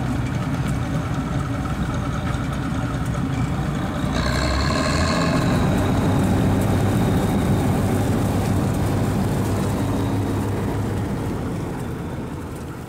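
A combine harvester engine rumbles steadily nearby.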